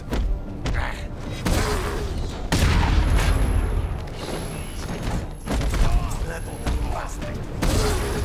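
Punches and kicks thud in a brawl.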